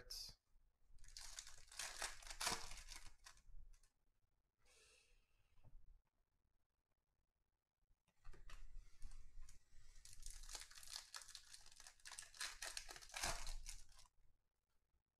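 A plastic wrapper crinkles as hands tear it open.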